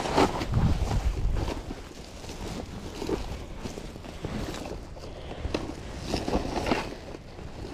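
A plastic sack rustles and crinkles up close.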